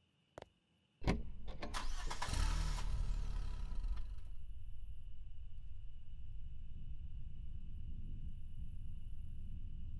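A truck engine starts and rumbles steadily.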